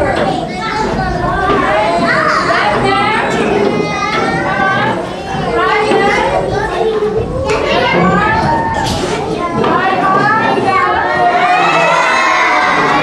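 A group of young children sings together in a large echoing hall.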